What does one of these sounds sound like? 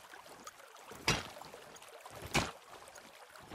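A pickaxe strikes rock with sharp clinks.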